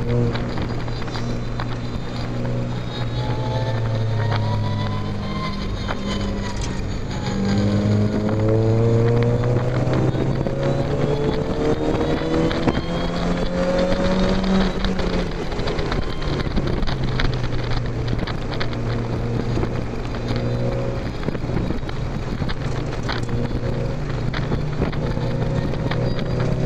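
Wind rushes loudly past an open car.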